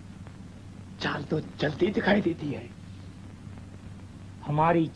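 A man speaks sharply and with tension, close by.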